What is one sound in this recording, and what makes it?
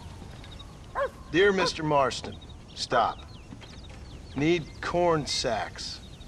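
A man reads out a message slowly.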